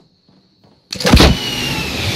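A rocket launcher fires with a loud boom.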